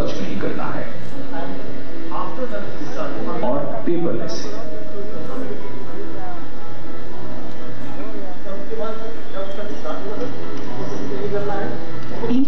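A man speaks over loudspeakers in a large echoing hall.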